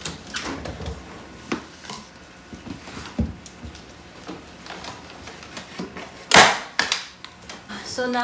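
Sheets of material rustle and scrape as they are handled.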